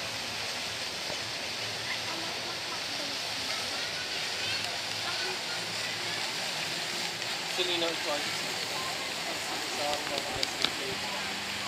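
Fountains splash steadily in the distance.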